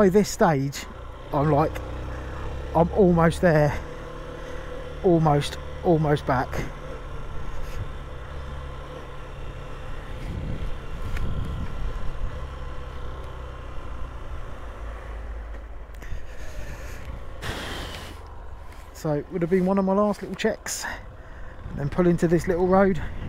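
A motorcycle engine hums steadily at close range.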